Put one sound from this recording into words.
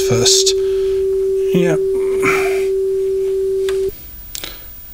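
A steady tone plays from a cassette deck.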